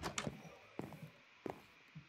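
A wooden door creaks.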